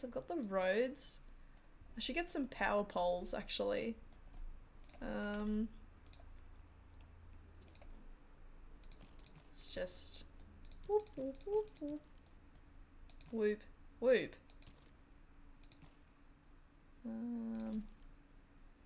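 A woman talks calmly and closely into a microphone, in short bursts.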